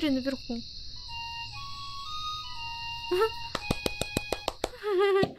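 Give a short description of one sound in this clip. A pipe plays a short, simple tune.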